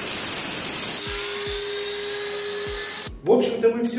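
A power saw's blade winds down after cutting.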